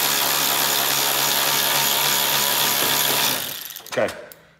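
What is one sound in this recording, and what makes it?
A cordless power driver whirs steadily.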